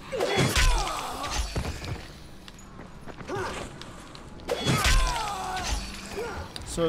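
Heavy melee blows thud into a body.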